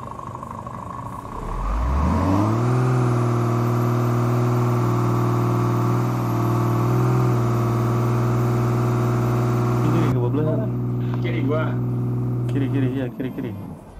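A heavy truck engine revs up and then drones steadily.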